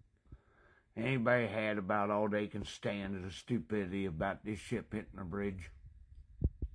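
An older man speaks close to the microphone in a low, emphatic voice.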